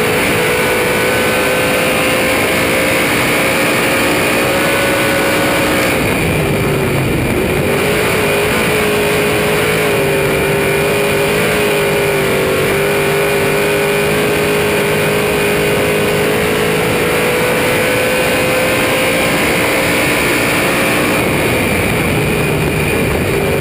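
A race car engine roars loudly and steadily up close, dipping briefly as the car slows into a turn.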